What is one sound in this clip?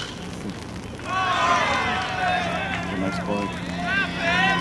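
Young men shout and cheer loudly outdoors.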